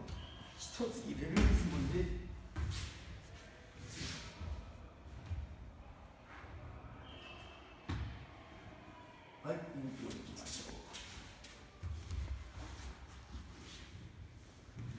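Bare feet shuffle and slide on a padded mat.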